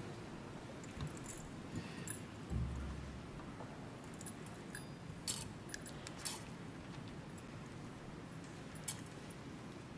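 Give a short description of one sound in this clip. Metal censer chains clink and rattle.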